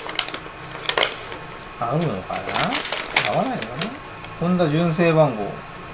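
Paper rustles as it is unfolded.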